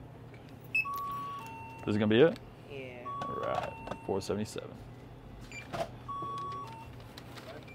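A handheld scanner beeps several times.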